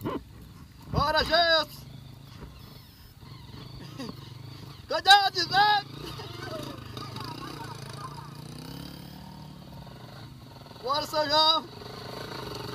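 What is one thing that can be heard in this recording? Dirt bike engines rev and roar in loud bursts.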